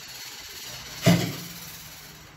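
A metal ladle clanks against an aluminium pot.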